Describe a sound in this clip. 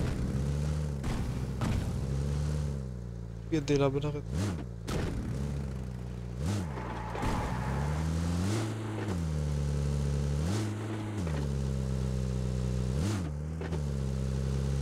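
A vehicle engine hums steadily and rises and falls in pitch as it drives.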